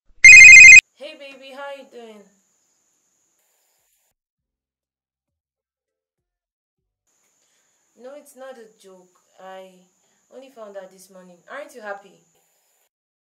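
A young woman talks on a phone close by, with emotion.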